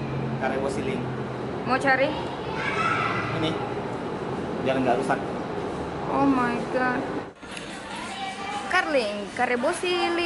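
A young man talks casually, close by.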